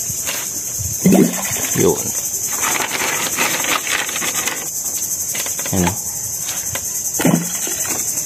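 Shells splash into water.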